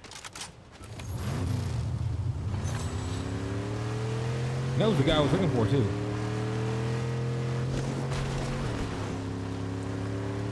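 A car engine revs up and roars steadily.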